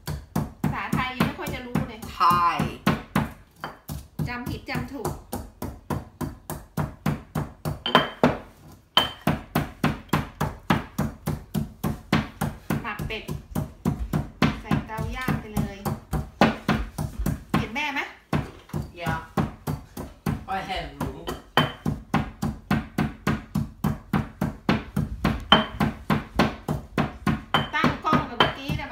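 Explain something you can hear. A pestle pounds rhythmically in a stone mortar.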